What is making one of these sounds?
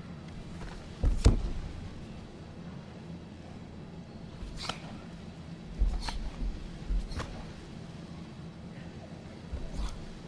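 A karate athlete's bare feet stamp and slap on a mat.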